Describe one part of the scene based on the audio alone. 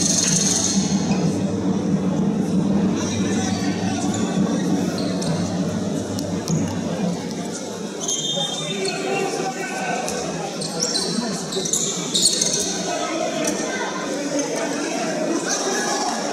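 A handball bounces on the floor.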